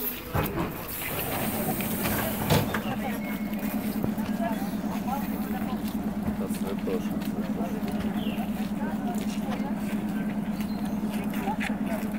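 An electric train hums steadily while standing.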